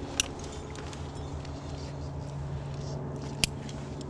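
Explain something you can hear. Metal carabiners clink against each other.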